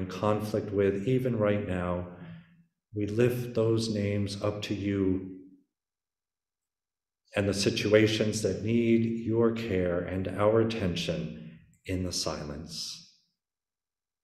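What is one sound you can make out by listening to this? A middle-aged man sings slowly and with feeling into a microphone.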